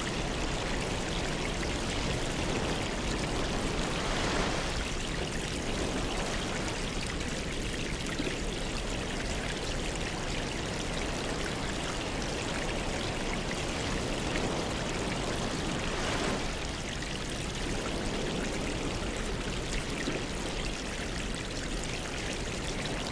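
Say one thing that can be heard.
Air bubbles rise and gurgle steadily in water.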